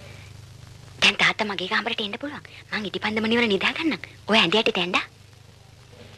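A young man speaks in a low, tense voice nearby.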